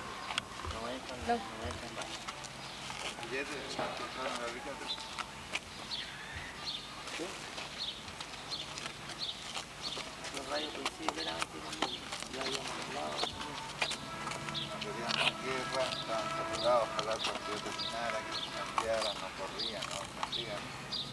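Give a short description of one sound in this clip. Several people talk at once outdoors.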